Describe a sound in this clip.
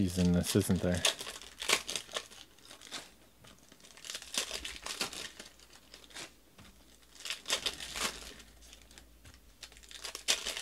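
Trading cards rustle and flick as hands sort through them.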